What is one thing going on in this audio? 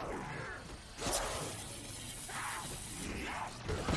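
A zombie growls and snarls up close.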